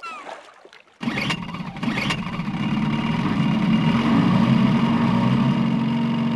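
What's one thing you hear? Water sprays and splashes behind a jet ski.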